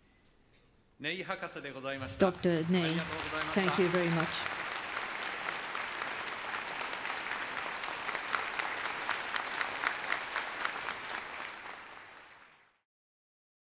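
An audience applauds loudly in a large hall and the applause fades out.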